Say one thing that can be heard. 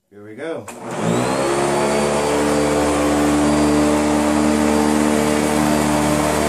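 A vacuum cleaner motor starts up and runs with a steady loud whir.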